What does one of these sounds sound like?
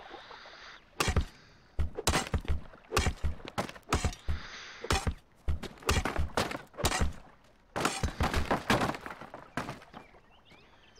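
A pickaxe strikes rock and dirt in quick, repeated knocks.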